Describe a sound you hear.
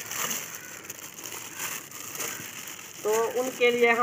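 A plastic bag rustles and crinkles as it is handled.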